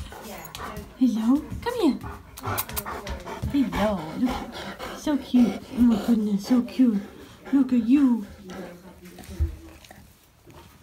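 A dog whines and grumbles up close in short, rising and falling bursts.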